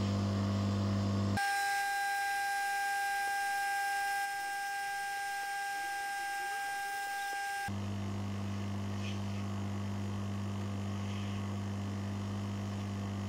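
A hot air blower hisses steadily close by.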